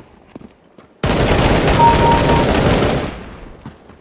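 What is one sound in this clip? An automatic rifle fires a rapid, sustained burst.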